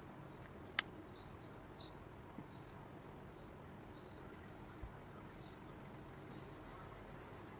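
A felt-tip marker scratches softly on paper.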